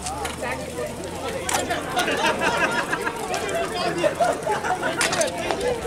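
Bicycle wheels tick as bikes are wheeled past.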